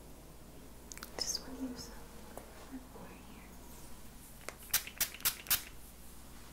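Fingers snap sharply close to a microphone.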